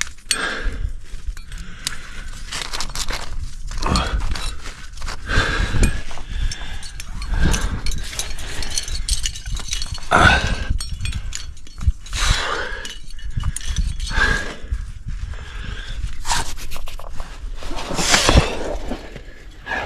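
A man breathes hard close by.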